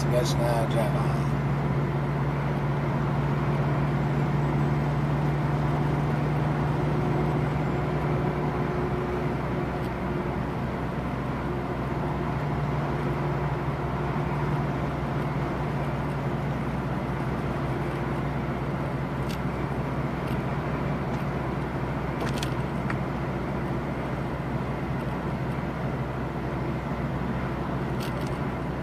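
A truck engine hums steadily, heard from inside the cab.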